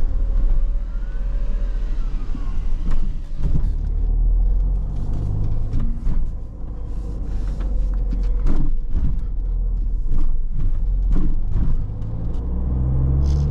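The car's interior rattles and knocks over bumps.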